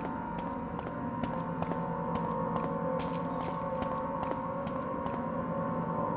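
Footsteps click quickly on a hard floor.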